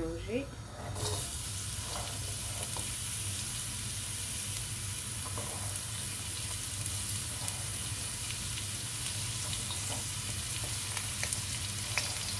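Onion sizzles steadily in hot oil.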